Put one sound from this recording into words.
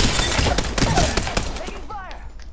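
Rapid gunfire bursts out loudly at close range.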